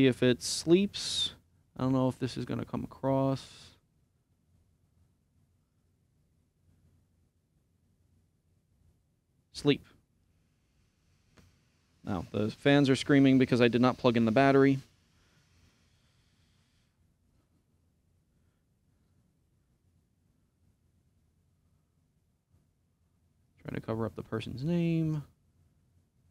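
A man speaks calmly and close to a microphone, with long pauses.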